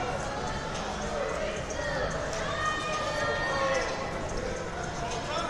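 A crowd of spectators murmurs and chatters throughout a large echoing hall.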